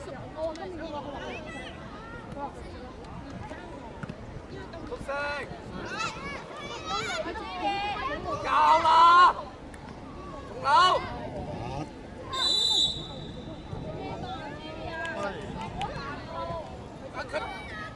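Children and adults shout and cheer excitedly outdoors.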